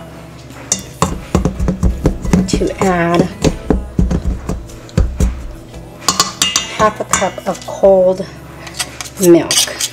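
A spoon scrapes and taps against a metal bowl.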